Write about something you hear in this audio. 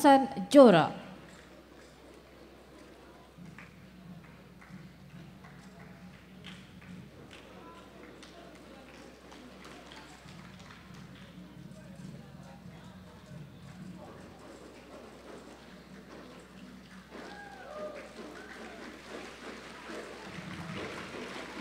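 A crowd of young people murmurs and chatters in a large echoing hall.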